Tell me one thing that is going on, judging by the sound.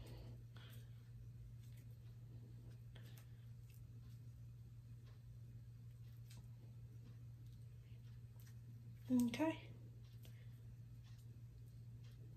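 Plastic hair rollers click and rustle against hair.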